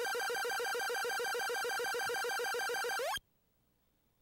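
A fast run of electronic beeps counts up a score, then stops.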